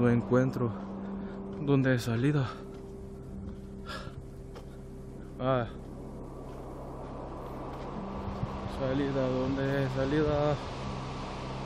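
A young man talks close by.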